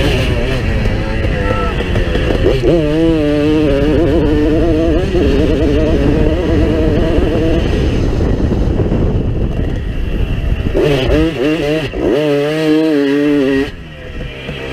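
Wind rushes loudly against the microphone outdoors.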